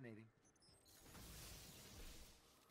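Electricity crackles and bursts.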